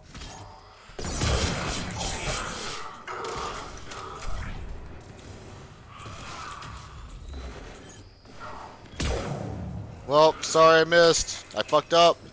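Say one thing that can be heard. Rifle shots crack in bursts.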